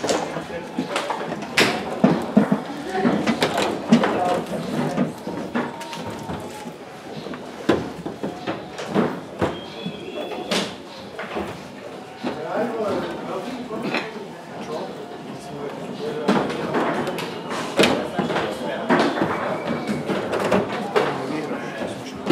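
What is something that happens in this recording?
A ball clacks and knocks against the figures and walls of a table football game.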